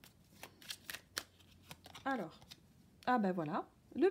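A card slides and taps on a cloth-covered surface.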